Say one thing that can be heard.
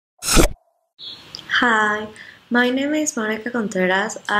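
A young woman speaks calmly and close to a microphone.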